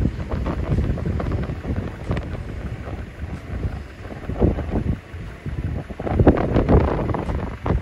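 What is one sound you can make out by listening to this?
Strong wind gusts roar and buffet outdoors.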